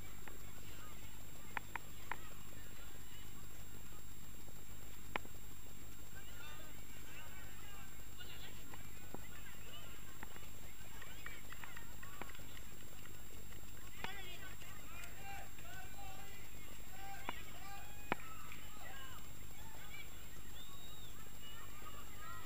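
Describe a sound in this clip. A crowd of young people chatters and calls out outdoors.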